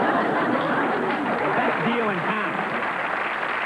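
A man speaks into a microphone over the crowd.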